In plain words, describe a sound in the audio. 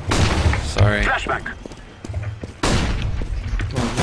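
Rapid gunshots fire.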